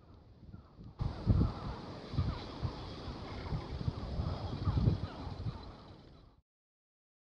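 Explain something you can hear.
Wind blows across open water and rustles dry reeds.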